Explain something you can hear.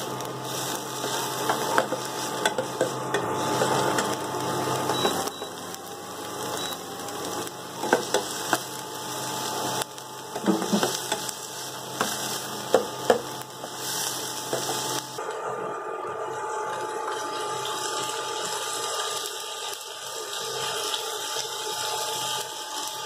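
Onions sizzle in hot oil.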